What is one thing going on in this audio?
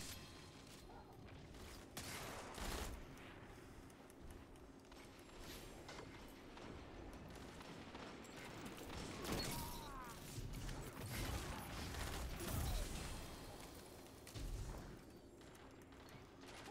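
Gunfire from a video game cracks in bursts.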